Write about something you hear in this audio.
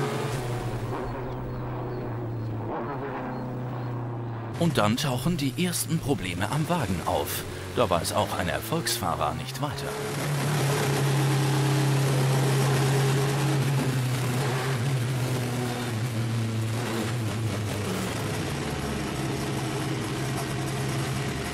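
A race car engine drones and roars steadily.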